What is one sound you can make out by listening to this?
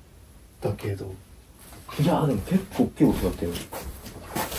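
A young man speaks quietly and tensely, close by.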